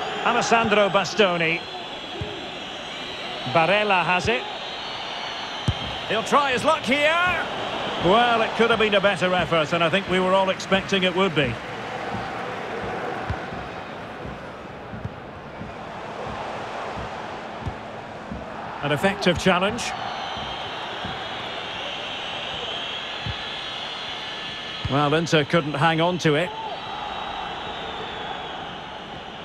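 A large crowd roars steadily in a big stadium.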